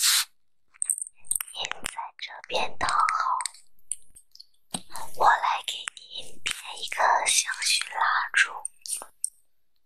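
Glass clinks as a jar is handled.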